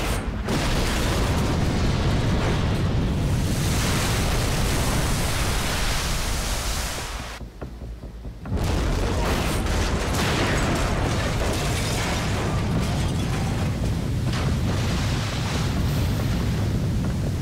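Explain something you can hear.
A huge explosion roars and rumbles deeply.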